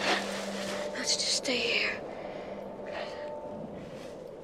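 A boy speaks softly and weakly, close by.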